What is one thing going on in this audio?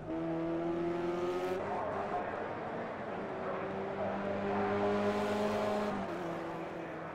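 Racing car engines roar and whine as the cars speed by, shifting gears.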